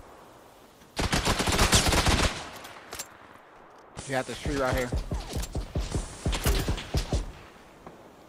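Rifle shots fire in rapid bursts nearby.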